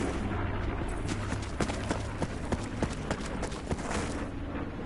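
Footsteps crunch quickly over dry, rocky ground.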